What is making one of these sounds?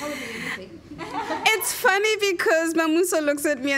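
A young woman speaks warmly close to a microphone.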